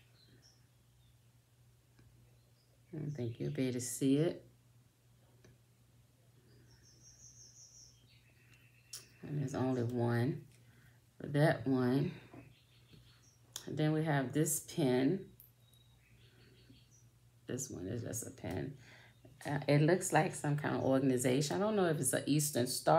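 Small metal pieces click softly between fingers.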